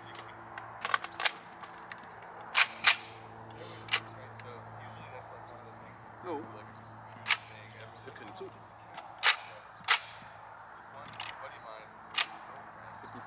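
Shotgun shots crack sharply outdoors, one after another.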